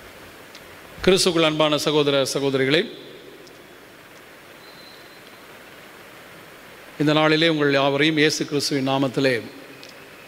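A middle-aged man chants slowly into a microphone, echoing through a large hall.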